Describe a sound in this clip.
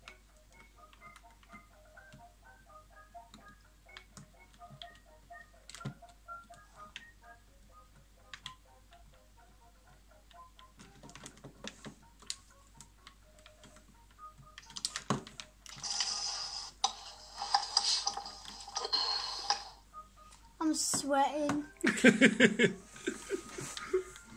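Buttons on a game controller click softly.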